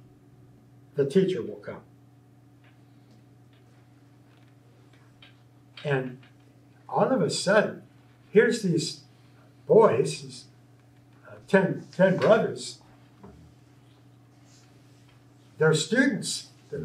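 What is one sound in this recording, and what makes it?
An older man talks calmly in short bursts with pauses, nearby.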